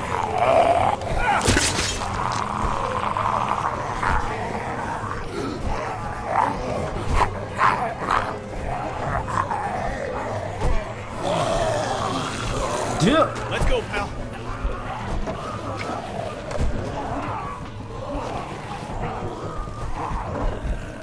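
A young man talks into a microphone with animation, close by.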